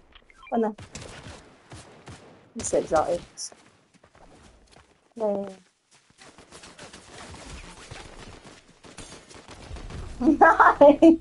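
Light footsteps patter quickly over grass and dirt.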